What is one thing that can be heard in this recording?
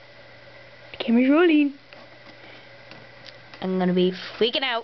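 A young woman makes silly, sing-song voice sounds close by, her pitch sliding up and down.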